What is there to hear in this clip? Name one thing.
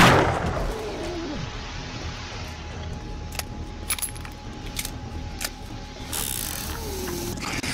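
A revolver is reloaded with metallic clicks.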